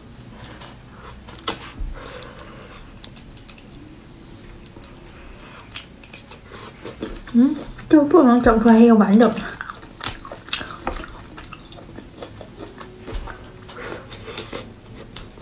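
A young woman slurps and chews food close to a microphone.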